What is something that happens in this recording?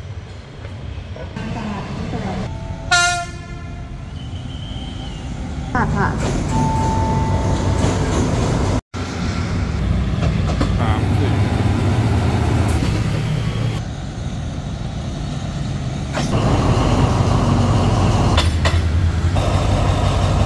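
Diesel locomotive engines rumble deeply as trains roll past.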